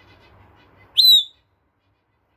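A parrot gives a loud, sharp whistle up close.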